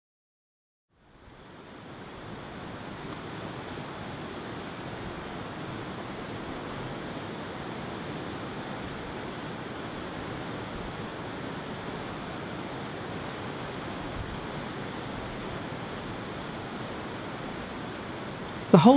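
Waves crash and roar steadily on a shore outdoors in wind.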